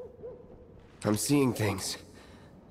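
A young man speaks quietly and wearily.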